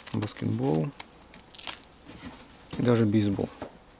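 Plastic sleeves crinkle as they are handled.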